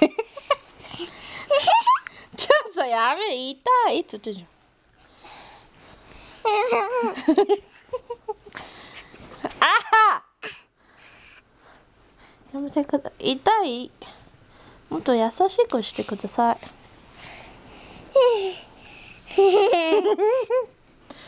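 A young child laughs and squeals up close in bursts.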